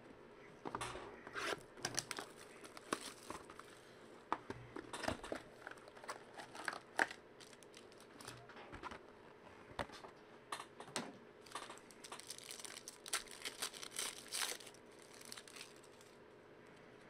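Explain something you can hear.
Foil wrappers crinkle and rustle as hands open card packs.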